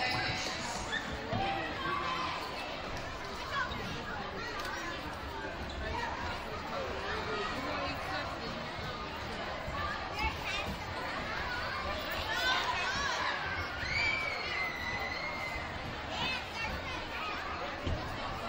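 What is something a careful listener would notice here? A large crowd of children and adults chatters and shouts in a big echoing gym.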